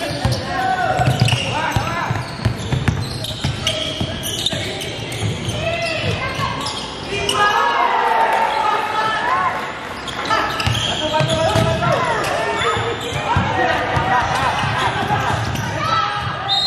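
A basketball bounces with dull thuds on a wooden floor.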